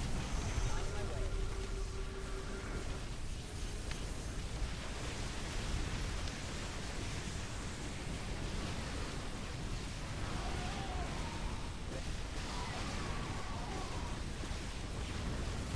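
Laser fire and explosions crackle in a busy battle.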